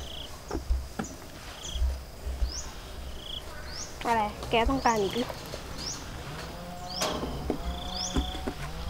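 An ostrich pecks its beak against a trough with sharp knocks.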